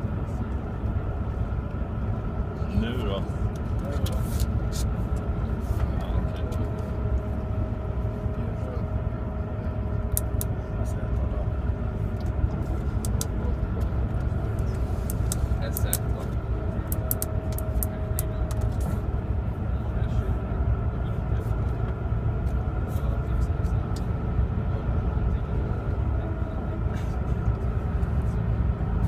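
Young men talk quietly nearby.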